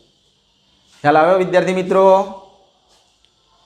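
A man speaks loudly and clearly, close by.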